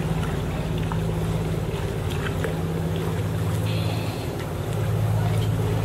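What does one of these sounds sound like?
A kayak paddle dips and splashes in water.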